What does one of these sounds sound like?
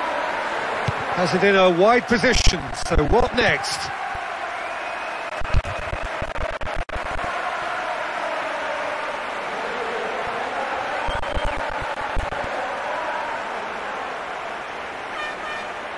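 A large stadium crowd murmurs and roars steadily.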